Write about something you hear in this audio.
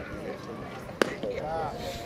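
A baseball smacks into a catcher's mitt with a sharp pop.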